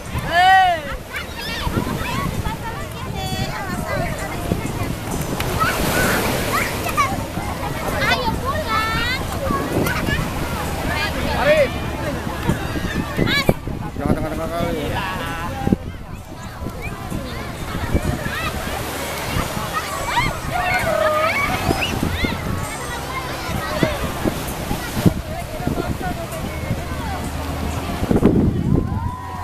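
Children shout and squeal nearby outdoors.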